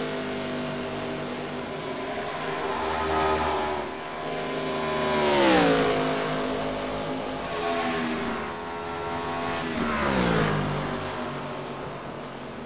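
A race car engine roars steadily, dropping in pitch as the car passes close by.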